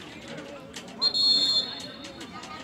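A referee's whistle blows sharply.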